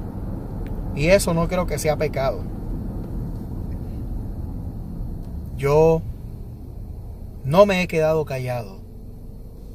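A middle-aged man speaks up close in short bursts.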